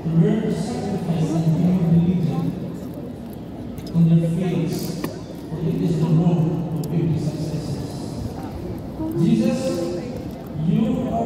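A crowd of people talks and murmurs in a large echoing hall.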